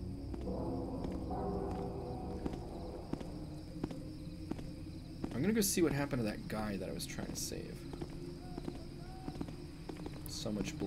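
Soft footsteps tread at a steady pace.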